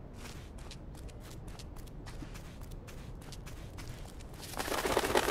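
Light footsteps patter quickly on soft ground.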